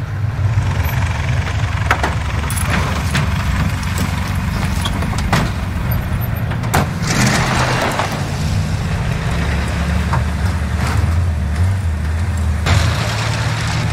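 A truck engine rumbles at idle.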